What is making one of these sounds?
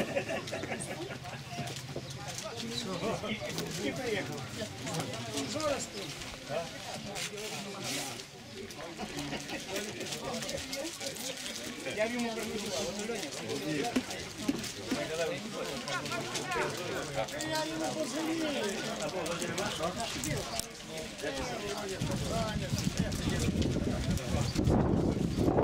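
Men call and talk loudly across an open outdoor field.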